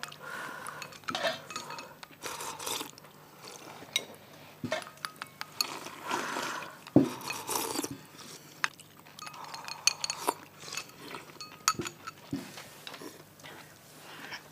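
People slurp noodles loudly from bowls.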